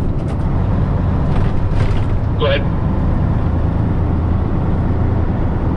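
A truck engine rumbles steadily, heard from inside the cab.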